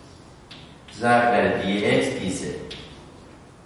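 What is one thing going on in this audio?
A man speaks calmly nearby, with a slight echo.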